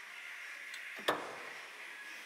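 A fuel flap snaps shut with a click.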